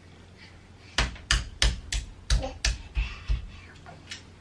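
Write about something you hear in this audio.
A toddler slaps a wooden crib rail several times.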